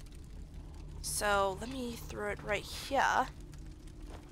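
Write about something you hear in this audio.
A young woman speaks close to a microphone.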